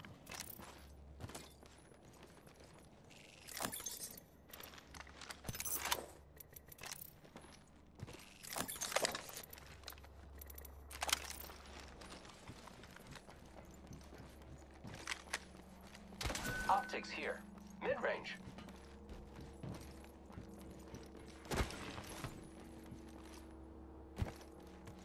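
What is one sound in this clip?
Footsteps thud on a metal floor at a run.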